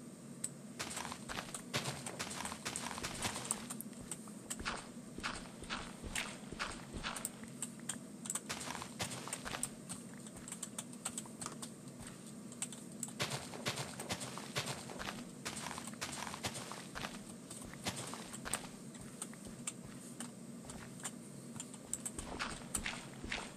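A game shovel digs through dirt with rapid, repeated crunching thuds.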